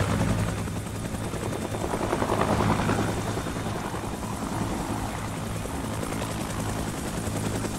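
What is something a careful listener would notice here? A helicopter's rotor thumps steadily as it flies.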